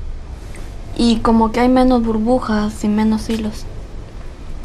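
A young man speaks quietly and calmly nearby.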